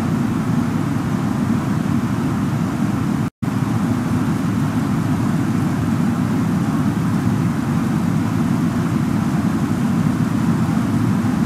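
Jet engines roar steadily with a low rumble of rushing air.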